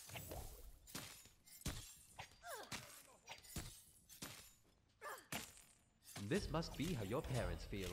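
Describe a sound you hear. A magic blast bursts with a loud whoosh.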